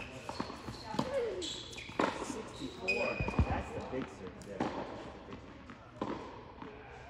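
A tennis racket strikes a ball with sharp pops in a large echoing hall.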